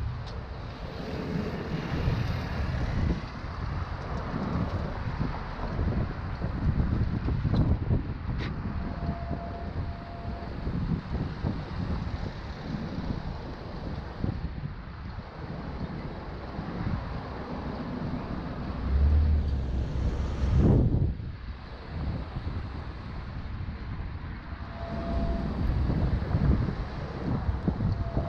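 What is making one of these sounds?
Wind rumbles and buffets against a microphone outdoors.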